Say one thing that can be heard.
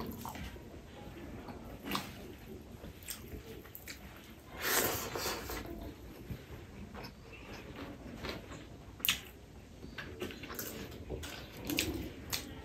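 A man chews food with his mouth closed, close by.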